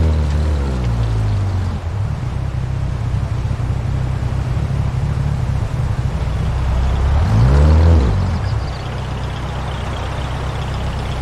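A rally car engine roars and revs up and down.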